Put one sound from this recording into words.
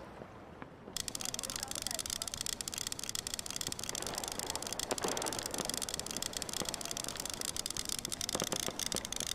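A fishing reel whirs steadily as line is reeled in.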